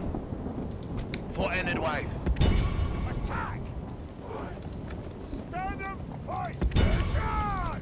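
Horse hooves thud softly on grass as a group of riders moves along.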